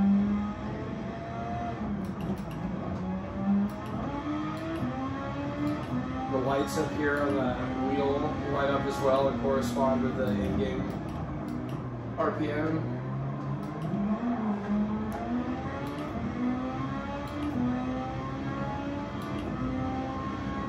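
A racing car engine roars and whines through loudspeakers, rising and falling in pitch with gear changes.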